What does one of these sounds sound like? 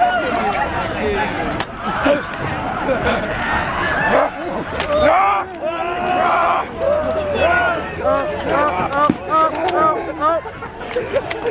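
A young man growls and moans loudly close by.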